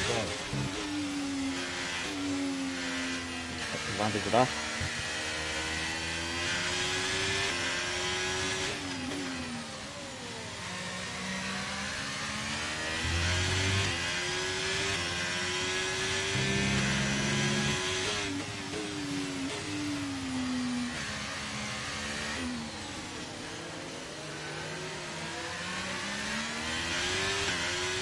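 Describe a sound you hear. A racing car engine screams, rising and falling in pitch.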